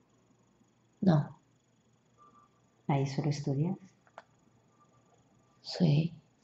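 A young woman speaks softly close by in short bursts.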